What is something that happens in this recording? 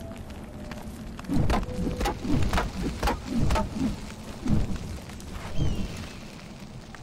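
A fire crackles and roars close by.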